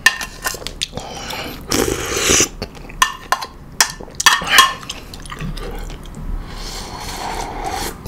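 A man slurps soup from a spoon.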